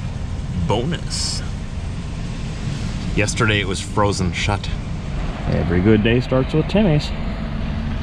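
A man talks casually and close by.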